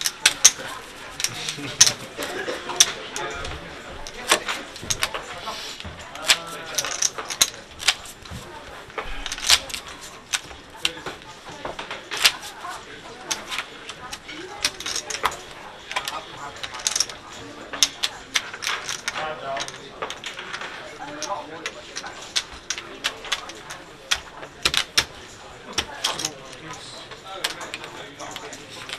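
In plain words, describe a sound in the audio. Poker chips clack and click against each other.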